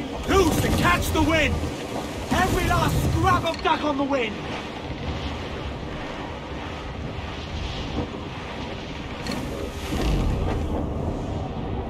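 Waves wash and splash steadily against a sailing ship.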